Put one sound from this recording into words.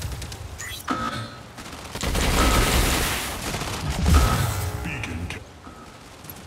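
A large robot machine rumbles and whooshes with loud mechanical effects.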